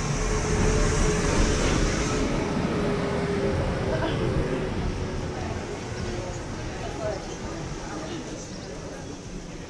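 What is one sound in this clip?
A crowd of men and women murmurs and chatters nearby outdoors.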